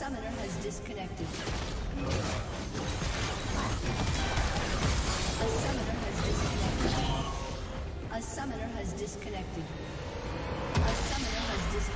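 Game spells and weapons clash and explode rapidly in a battle.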